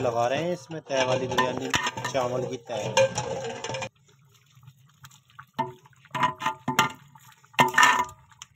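Water boils and bubbles in a large pot.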